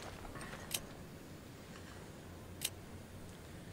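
A game menu clicks as items are selected.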